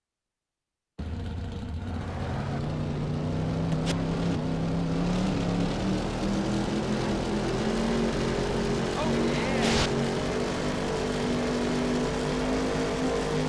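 Tyres skid and crunch over dirt.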